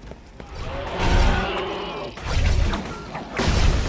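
A gun fires in loud, booming blasts.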